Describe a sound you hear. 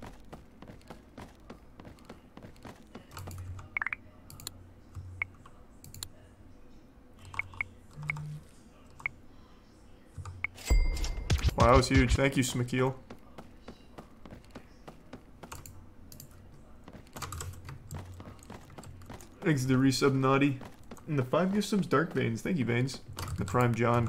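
Keys and a mouse click rapidly throughout.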